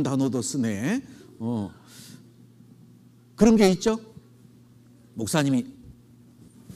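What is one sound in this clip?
A man speaks into a microphone in short, lively bursts with pauses in between.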